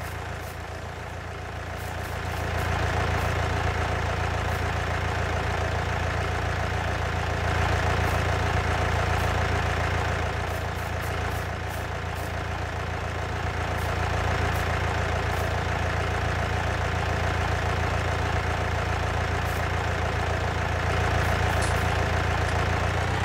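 A tractor engine runs with a steady low drone.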